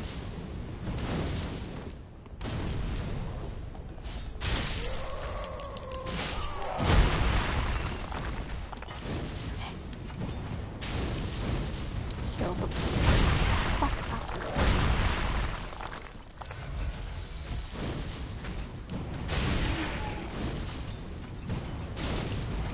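Fire spells burst and roar.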